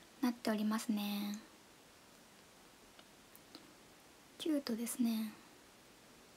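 A young woman speaks briefly and calmly close to a microphone.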